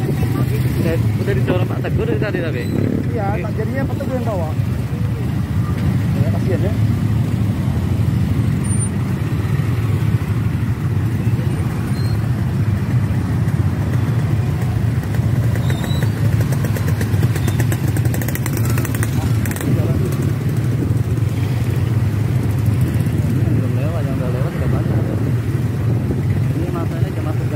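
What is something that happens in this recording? Many motorcycle engines idle and rumble steadily outdoors.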